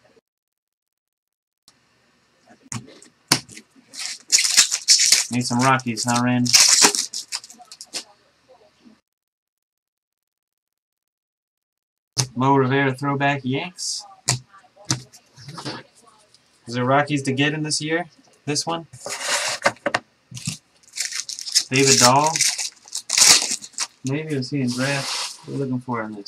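Trading cards riffle and slap as they are shuffled.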